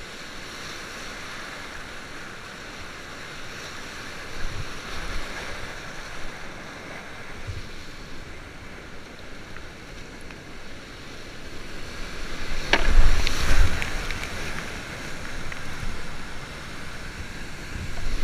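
Whitewater rapids rush and roar steadily close by.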